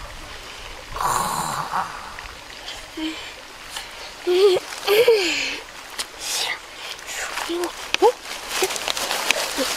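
A young boy groans and whimpers in pain.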